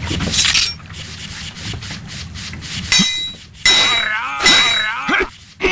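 Metal swords clash and ring sharply.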